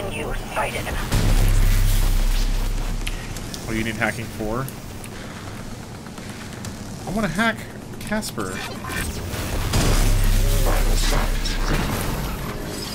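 An electric blast booms and crackles.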